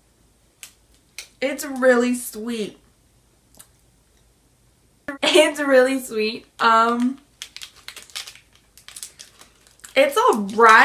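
A plastic wrapper crinkles in hands.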